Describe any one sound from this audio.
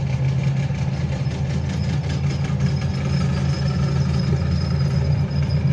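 Armoured military vehicles rumble past on the road.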